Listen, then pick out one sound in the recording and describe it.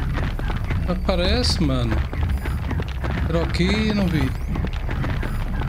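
A mechanical creature gives a warbling electronic call.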